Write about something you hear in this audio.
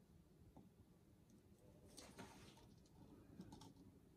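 A plastic cup is set down on a table.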